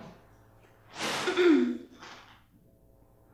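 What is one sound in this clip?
A young woman speaks briefly and breathily nearby.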